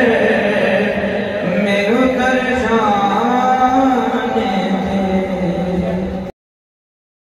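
A young man sings a melodic chant through a microphone, heard over a loudspeaker in an echoing room.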